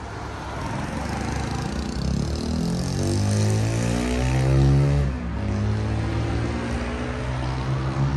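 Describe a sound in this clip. A car drives past on a nearby road.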